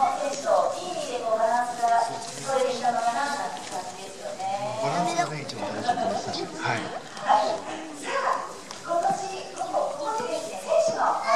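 A young woman speaks calmly through a microphone over a loudspeaker.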